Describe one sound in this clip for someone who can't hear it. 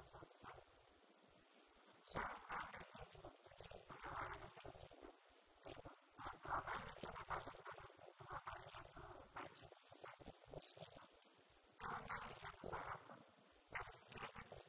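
A young woman speaks calmly into a microphone, heard through a loudspeaker in an echoing room.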